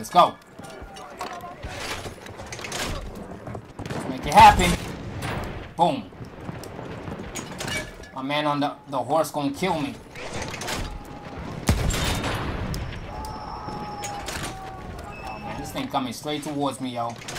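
A heavy shell slides into a gun breech with a metallic clank.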